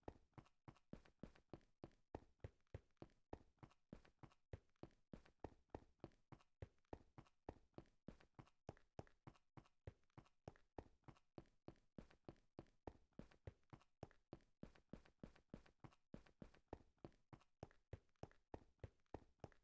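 Footsteps tread quickly and steadily on hard ground.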